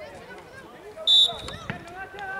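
A referee blows a short, sharp whistle blast.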